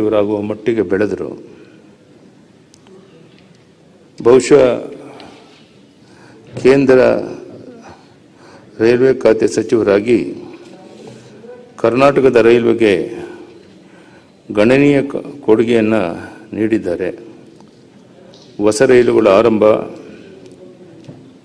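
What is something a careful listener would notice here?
A man speaks through a microphone in short bursts with pauses.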